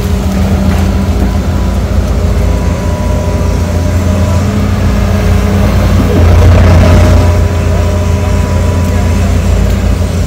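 Excavator engines rumble and drone steadily outdoors.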